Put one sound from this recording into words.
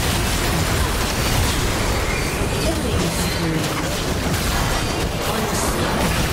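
Game spells blast and crackle in a rapid, busy fight.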